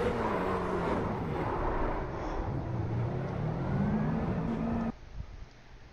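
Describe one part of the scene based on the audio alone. A race car engine roars.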